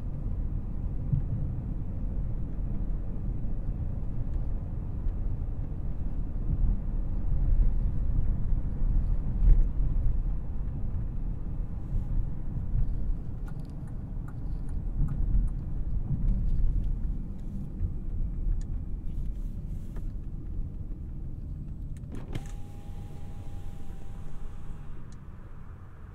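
A twin-turbo W12 luxury sedan cruises, heard from inside the cabin.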